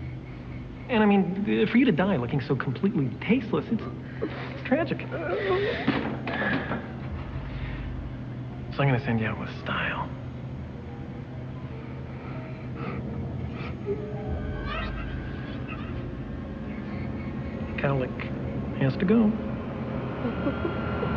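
A woman moans and cries out through a gag.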